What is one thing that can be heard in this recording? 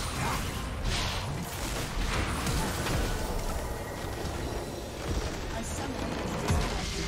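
Game spell effects crash and burst in a loud battle.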